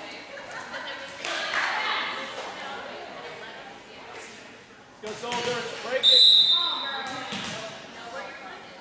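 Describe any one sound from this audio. Young girls shout and call out to one another in a large echoing gym.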